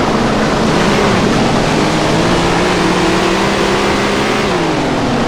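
Tyres skid and spray over loose dirt.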